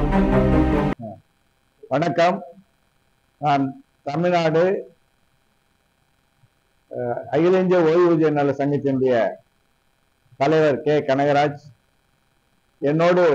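An elderly man speaks calmly and slowly, pausing between short phrases.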